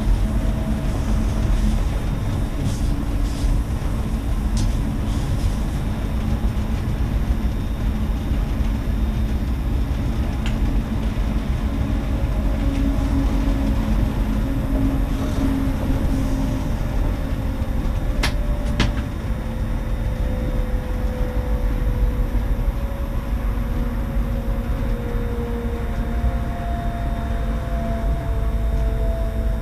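A train rumbles steadily along the rails, its wheels rattling on the track.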